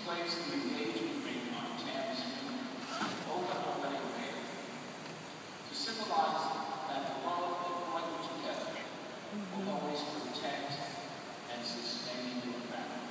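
A man speaks slowly and calmly at a distance, echoing in a large hall.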